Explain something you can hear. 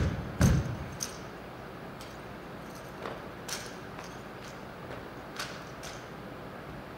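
Rifles slap and click sharply in drill cadets' hands.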